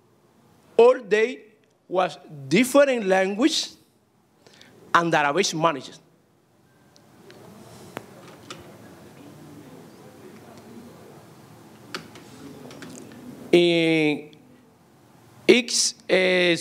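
A man speaks into a microphone, lecturing with pauses, heard through a loudspeaker.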